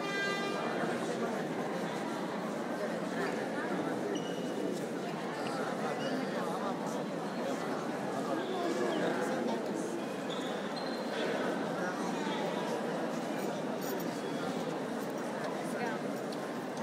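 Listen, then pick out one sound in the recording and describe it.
A large crowd of men and women chatters in a big echoing hall.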